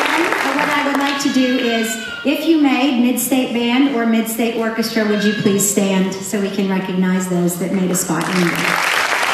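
A woman sings loudly through a microphone in a large hall.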